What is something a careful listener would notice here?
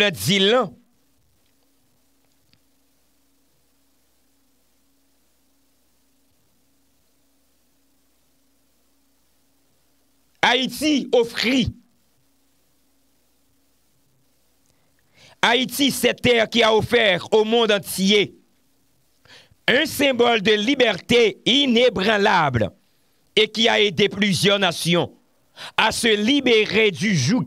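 A young man speaks with animation into a close microphone, with long pauses.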